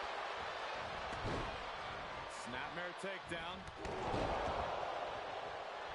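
Heavy bodies thud onto a ring mat.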